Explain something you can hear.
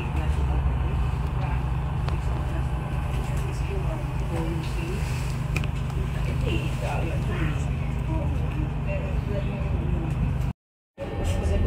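A bus engine rumbles low and steadily.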